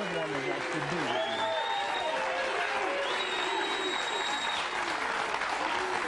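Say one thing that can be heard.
A large crowd applauds throughout.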